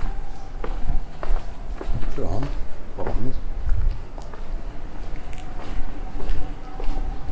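Footsteps walk steadily along a paved street.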